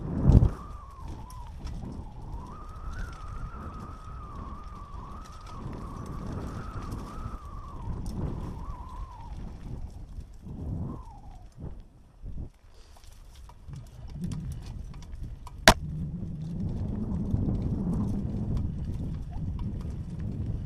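Mountain bike tyres roll and crunch downhill over a rocky dirt trail.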